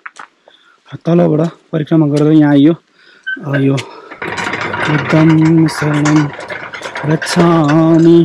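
A bell rings loudly as prayer wheels are turned by hand.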